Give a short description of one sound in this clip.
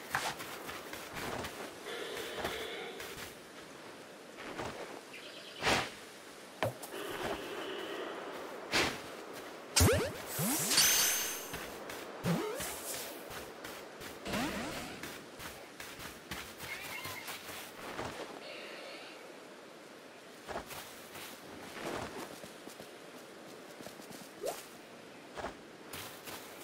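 Footsteps patter quickly on dirt and grass.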